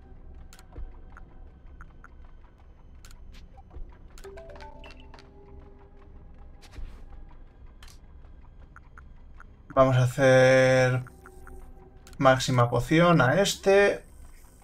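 Soft menu clicks blip as a cursor moves through a game menu.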